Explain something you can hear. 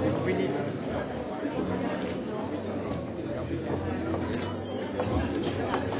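A crowd of men and women chatter in the background of a room.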